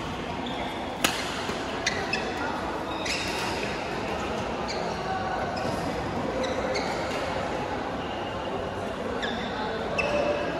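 Shuttlecocks are struck sharply with rackets, again and again.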